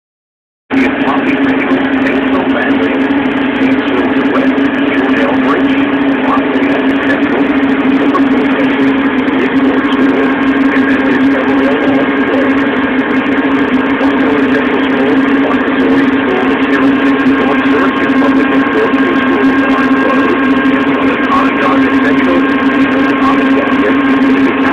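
A snowblower engine drones steadily and loudly close by.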